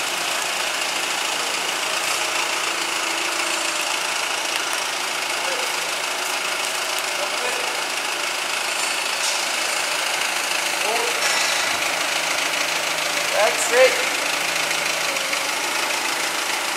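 A forklift engine hums steadily in a large echoing hall.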